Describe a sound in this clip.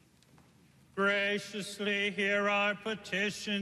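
A man chants in song, echoing through a large hall.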